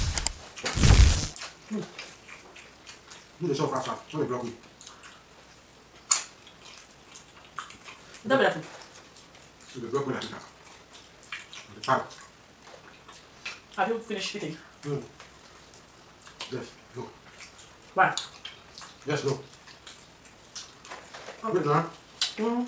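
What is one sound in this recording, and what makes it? Fingers squelch in a pot of stew.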